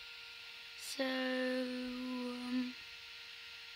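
A young boy sings a long, steady note close by.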